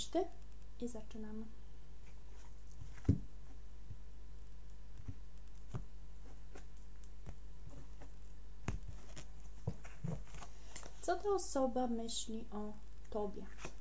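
Cards tap and slide softly against each other and a table.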